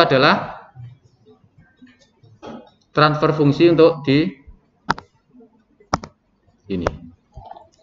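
A man speaks calmly into a microphone, as if explaining.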